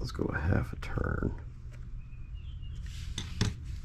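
A small metal valve clicks as it is turned by hand.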